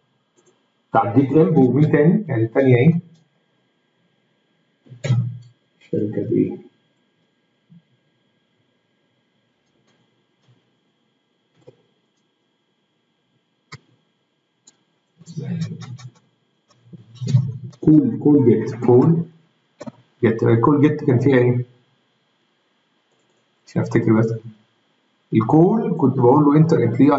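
A man speaks calmly and explains into a close microphone, with pauses.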